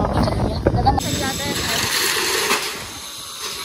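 A metal rolling shutter rattles as it is pulled.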